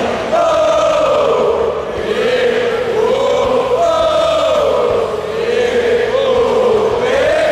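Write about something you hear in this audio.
A large crowd chants loudly in unison, outdoors, with a rising and falling melody.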